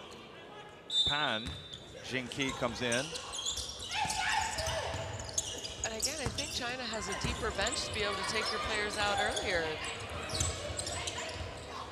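Basketball players run across the court with thudding footsteps.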